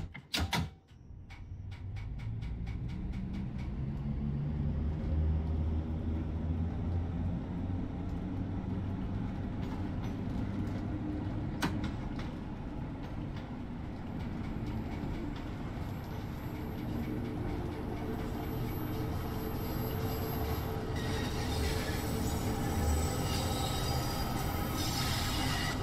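A train pulls away and rumbles faster through a tunnel.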